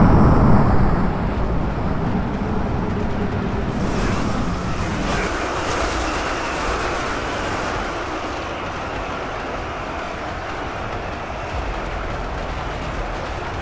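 A huge army marches and clashes in a loud, dense battle roar.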